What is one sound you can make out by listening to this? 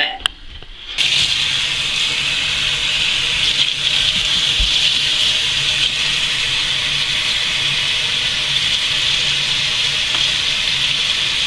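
Water from a tap splashes steadily into a sink.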